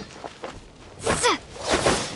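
A sword swings with a sharp whoosh and a ringing slash.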